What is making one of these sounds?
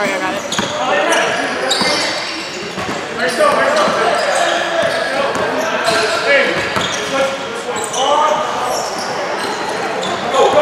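Young players shout and call out in a large echoing hall.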